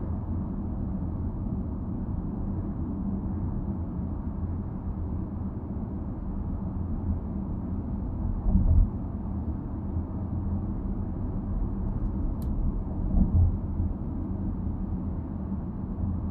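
Tyres roll on smooth pavement.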